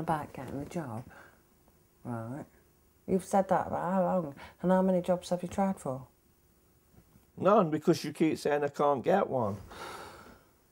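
A woman speaks with agitation nearby.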